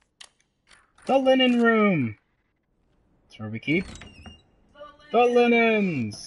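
A door creaks loudly as it swings open.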